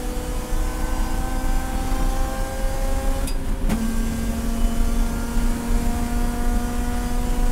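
Wind rushes against the car.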